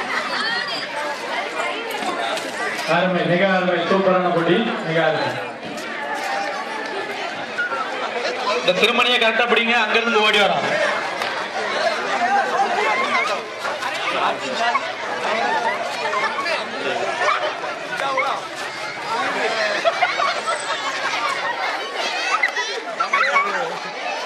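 A crowd of men and women chatters and calls out loudly outdoors.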